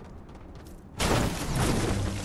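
A game character lands with a heavy thud.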